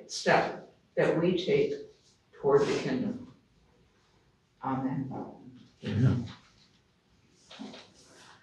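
An elderly woman speaks slowly and calmly, in short phrases with pauses.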